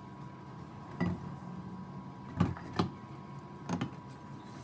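Pieces of meat knock softly against a metal bowl.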